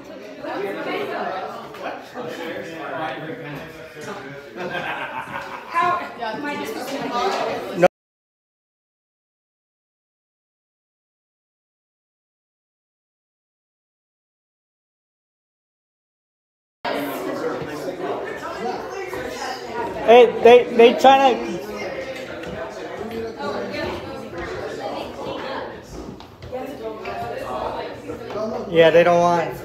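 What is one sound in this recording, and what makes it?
Men and women chat nearby in a lively crowd.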